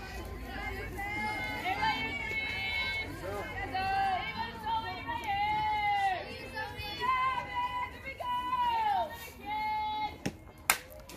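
Young women chant and cheer loudly from a distance outdoors.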